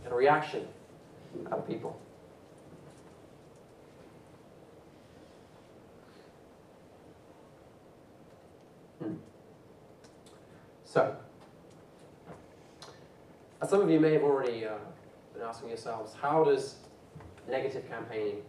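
A man speaks through a microphone in a hall, pausing now and then.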